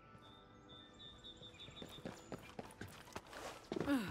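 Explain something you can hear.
Footsteps thump on wooden boards.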